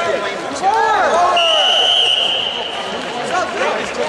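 A man shouts instructions close by.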